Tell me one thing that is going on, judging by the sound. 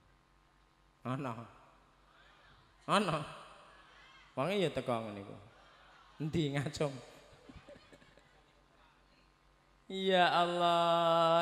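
A man sings in short, drawn-out phrases through a microphone and loudspeakers.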